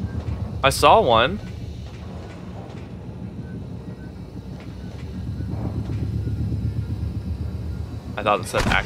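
Heavy machinery hums low and steadily.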